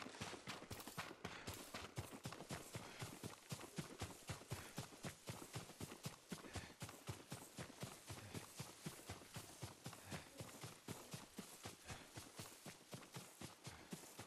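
Footsteps run quickly through tall grass.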